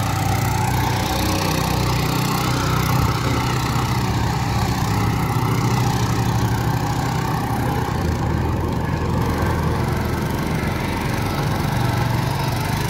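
A small tractor engine chugs steadily close by.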